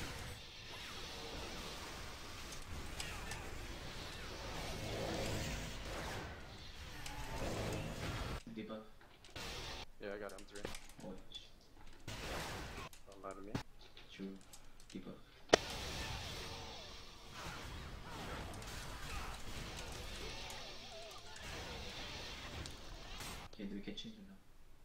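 Magic blasts and weapon clashes ring out in a fight.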